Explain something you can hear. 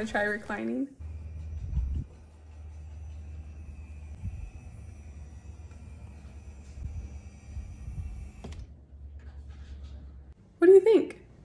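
A recliner motor hums steadily.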